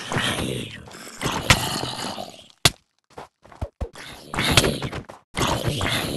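A zombie groans as it is struck.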